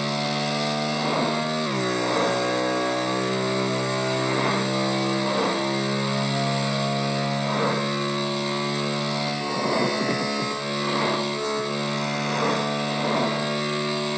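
Cars whoosh past the motorcycle now and then.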